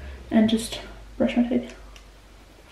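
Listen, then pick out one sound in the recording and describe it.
A young woman speaks briefly close by.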